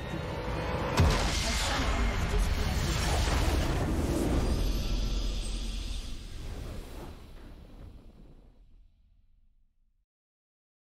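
A triumphant game fanfare swells and fades away.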